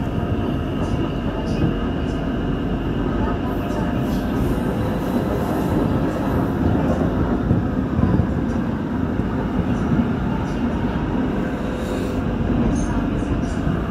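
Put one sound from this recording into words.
An electric commuter train rumbles along the track at speed, heard from inside the carriage.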